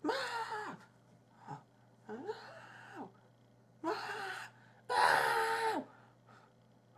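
A young man makes drawn-out, wavering vocal sounds in short bursts close to a microphone.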